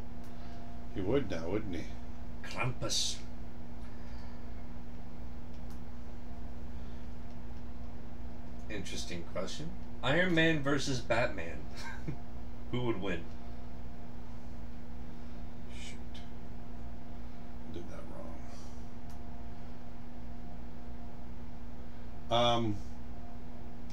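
A middle-aged man speaks calmly and in short bursts into a close microphone.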